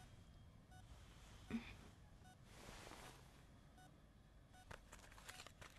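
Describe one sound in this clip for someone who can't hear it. A heart monitor beeps steadily at a slow, even pace.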